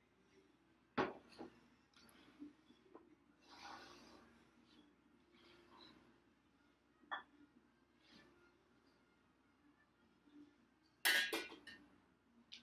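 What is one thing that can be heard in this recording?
Metal clanks against a metal pot.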